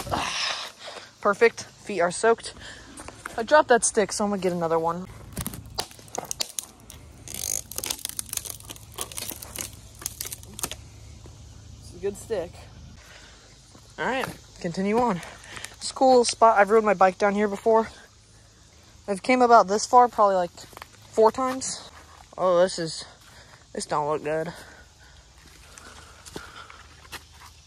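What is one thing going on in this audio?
Footsteps crunch on dry leaves and rock.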